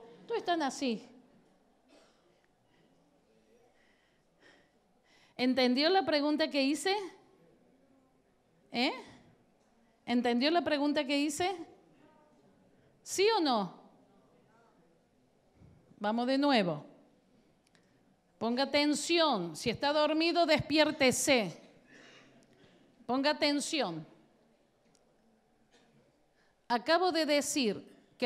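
A woman speaks with animation into a microphone, in short bursts with pauses.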